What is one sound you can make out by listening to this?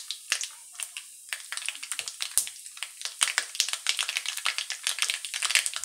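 Seeds sizzle and pop sharply in hot oil.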